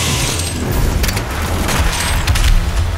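A heavy gun reloads with mechanical clanks.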